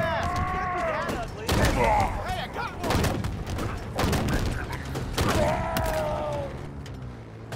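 Gunfire and blasts crack in quick bursts.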